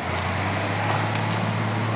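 A large lizard rustles through dry leaves.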